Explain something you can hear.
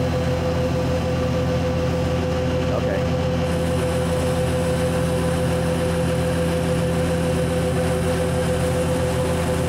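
A hydraulic cutter hums steadily as it presses through a steel pin.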